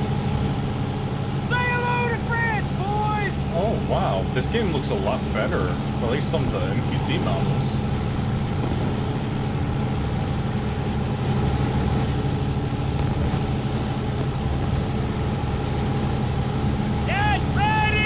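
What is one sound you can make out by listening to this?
An aircraft engine drones steadily and loudly inside a cabin.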